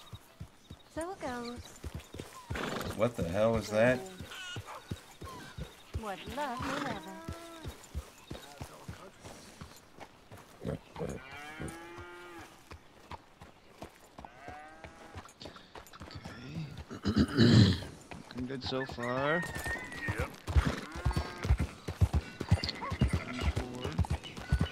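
Horse hooves clop steadily on grass and dirt.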